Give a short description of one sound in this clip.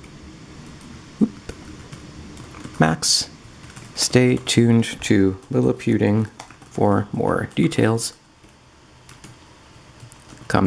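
Keys clatter softly as fingers type on a small keyboard.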